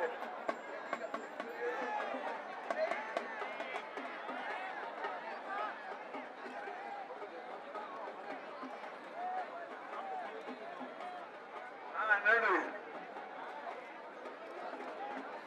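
A large crowd of men chants and sings together outdoors.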